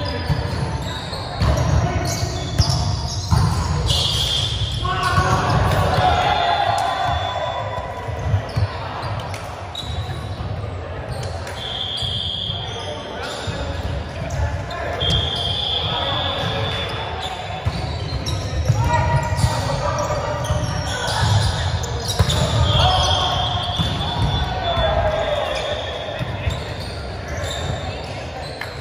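Volleyballs thump as players hit them, echoing in a large hall.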